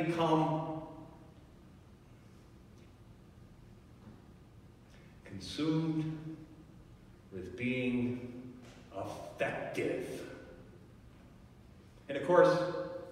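A man speaks slowly and calmly in a large echoing room, with pauses between phrases.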